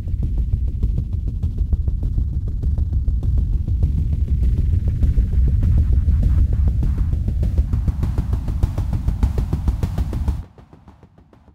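A synthesizer plays a deep, pulsing bass pattern.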